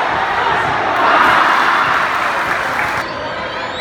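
A crowd swells into a loud cheer.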